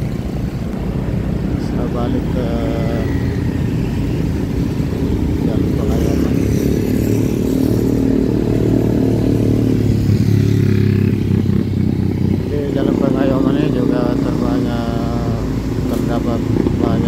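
Motorbike engines hum and buzz close by.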